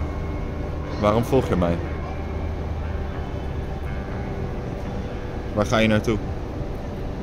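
A young man speaks briefly and calmly close by.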